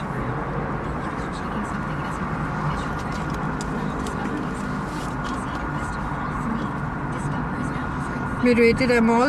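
Wind rushes steadily past an open car.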